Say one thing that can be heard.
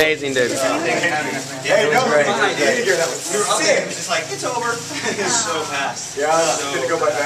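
Several young men talk and laugh loudly close by.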